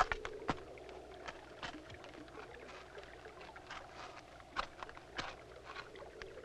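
Dry bare branches snap and crackle as a man pushes through them.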